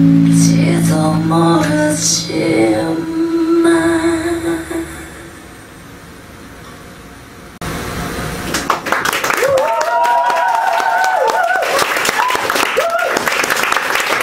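A singer sings into a microphone.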